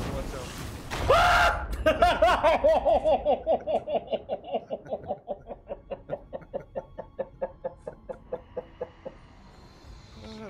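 A man laughs hard in rapid bursts into a close microphone.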